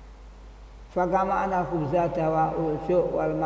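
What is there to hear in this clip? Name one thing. An elderly man chants in a melodic voice through a microphone.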